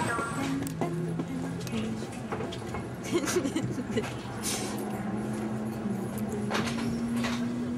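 A young woman talks and laughs close to the microphone.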